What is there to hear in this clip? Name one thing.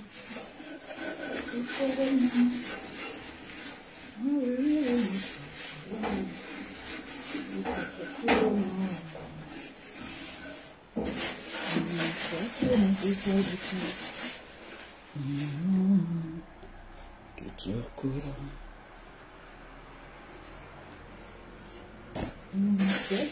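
A cloth rubs and wipes a surface.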